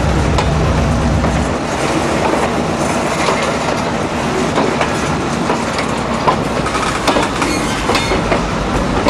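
Freight cars rumble and clatter along the rails close by.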